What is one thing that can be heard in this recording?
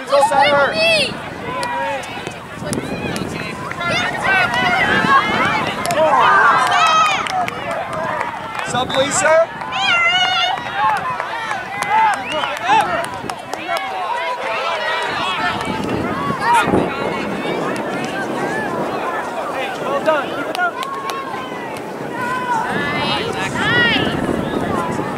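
Adult spectators call out and cheer from the sideline.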